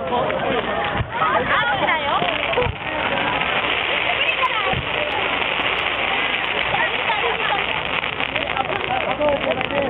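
Fireworks bang and crackle.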